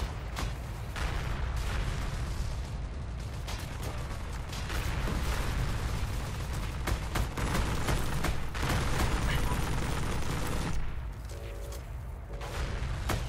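A tank engine rumbles low and steadily.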